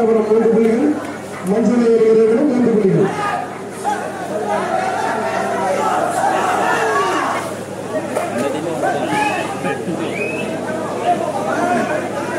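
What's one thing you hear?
A large crowd shouts and cheers loudly nearby.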